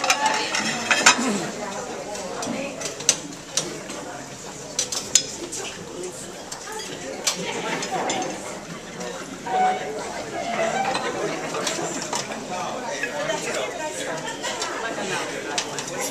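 Serving utensils clink against metal trays.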